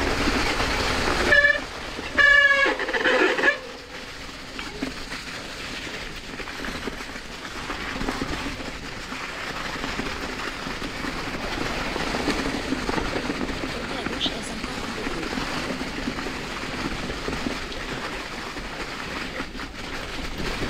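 Bicycle tyres roll and crunch over dry leaves on a dirt trail.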